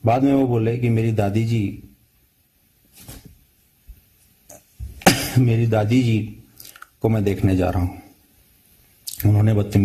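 A man speaks calmly over a phone or online call, in short bursts with pauses.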